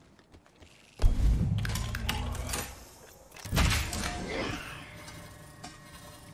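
A metal supply bin opens with a loud mechanical clank and whir.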